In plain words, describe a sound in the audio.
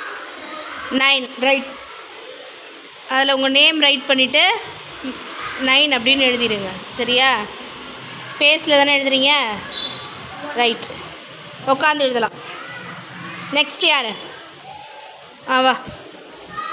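A young girl talks loudly and with animation close by.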